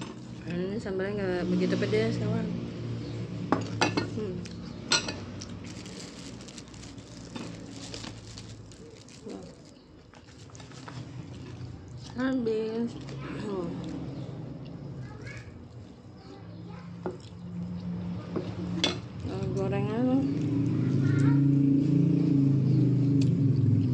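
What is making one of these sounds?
A woman chews food noisily close to the microphone.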